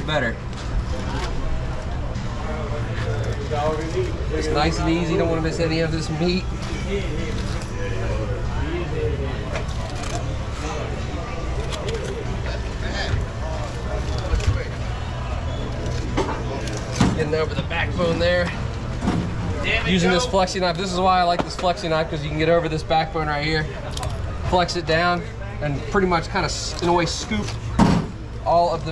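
A knife slices through fish flesh and scrapes against bone.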